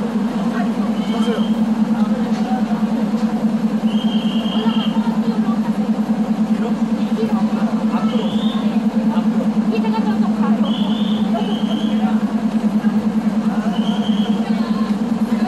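A train engine idles with a steady low hum.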